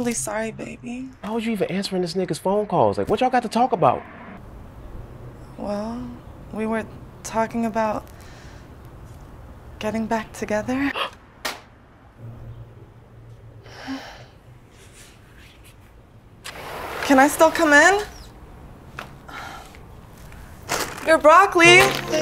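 A woman speaks emotionally, close by.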